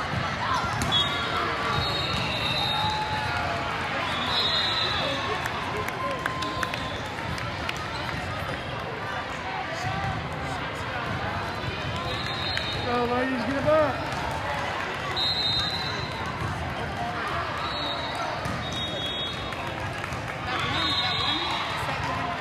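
Sneakers squeak sharply on the court floor.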